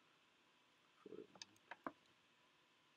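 Plastic clicks and knocks as a handheld device is gripped and moved.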